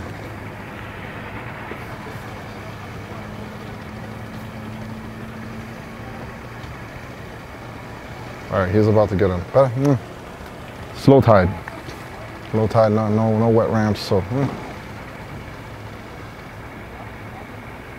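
Water laps gently against a dock.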